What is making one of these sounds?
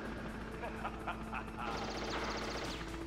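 Explosions bang and crackle.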